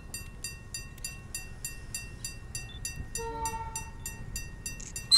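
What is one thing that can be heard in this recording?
A level crossing bell rings in quick, steady pulses.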